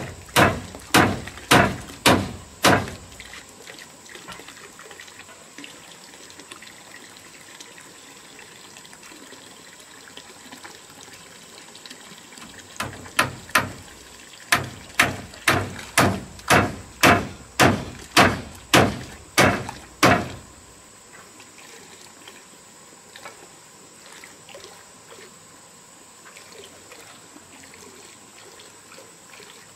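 Water pours steadily from a pipe and splashes into a tank.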